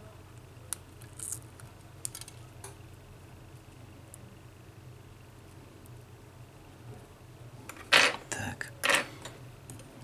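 Tweezers scrape and tick against metal.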